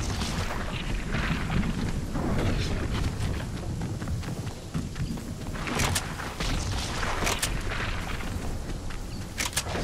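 Footsteps patter quickly over soft ground.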